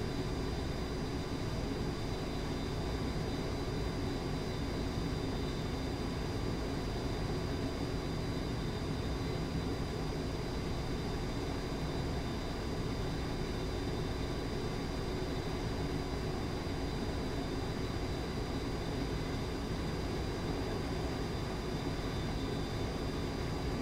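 Wind rushes against a cockpit canopy.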